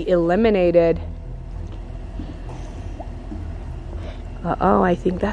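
Water splashes as children swim.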